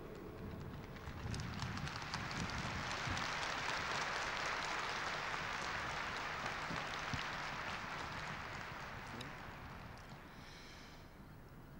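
A large crowd applauds outdoors, swelling and then slowly fading.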